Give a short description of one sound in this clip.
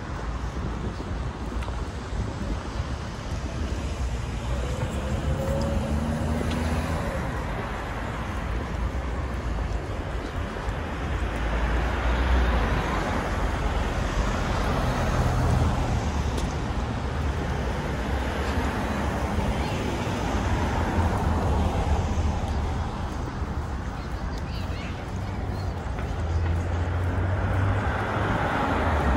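Steady traffic rumbles in the distance outdoors.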